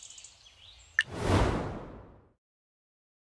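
A soft whoosh sweeps by as a menu opens.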